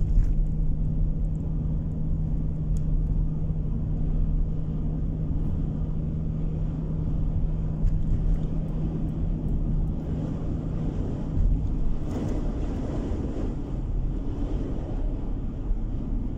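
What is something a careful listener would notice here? Tyres roll and rumble on the road.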